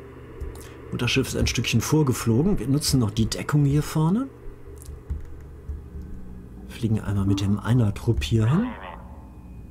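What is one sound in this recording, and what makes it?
An older man talks with animation close to a microphone.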